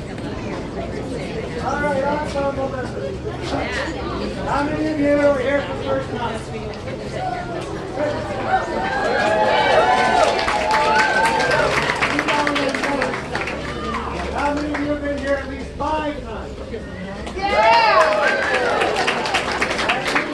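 A brass band plays a lively tune outdoors.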